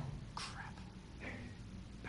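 A man mutters a short word.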